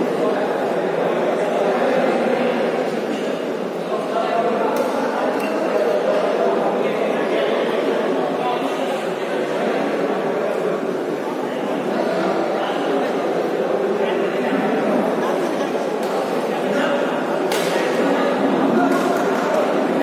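A crowd of spectators chatters steadily in a large echoing hall.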